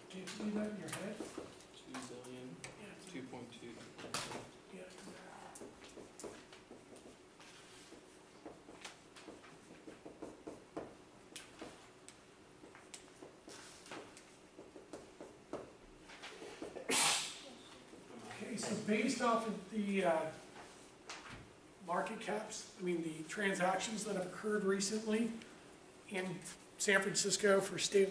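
A middle-aged man lectures calmly.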